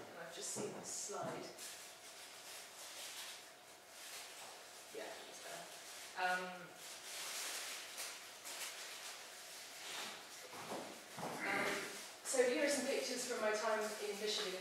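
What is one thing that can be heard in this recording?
A woman speaks calmly in a large echoing hall.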